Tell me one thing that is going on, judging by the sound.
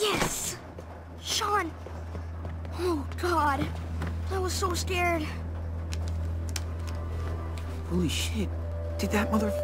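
A young man speaks anxiously and with relief, close by.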